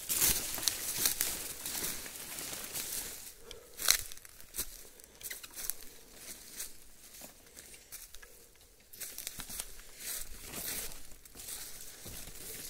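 Branches and leaves rustle and swish close by.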